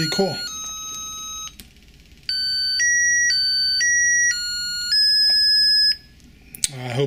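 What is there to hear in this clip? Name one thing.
Electronic beeping tones play in short steady notes of changing pitch.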